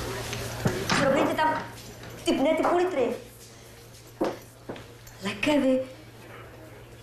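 A woman speaks in a questioning tone nearby.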